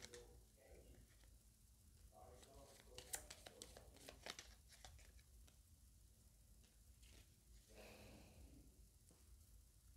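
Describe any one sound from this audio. Paper cards rustle softly as they are laid down one on another.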